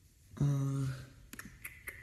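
A young person speaks briefly, close to a phone microphone.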